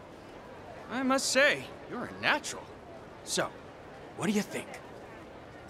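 A middle-aged man speaks calmly and cheerfully.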